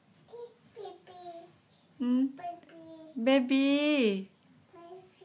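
A toddler girl babbles and squeals close by.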